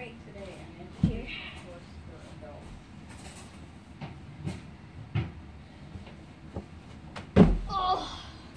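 A child lands with heavy thumps on soft cushions.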